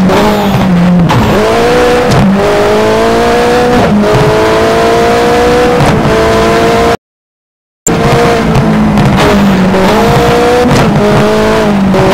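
A car engine revs hard, rising and falling in pitch with gear changes.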